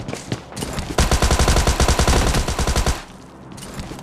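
Rapid automatic gunfire rattles in a long, loud burst.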